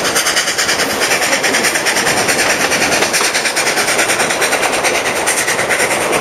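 Train carriages rumble and clatter steadily over the rails.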